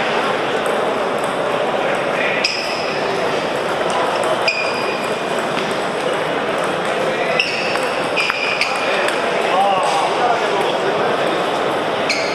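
A crowd of people murmurs steadily in the background.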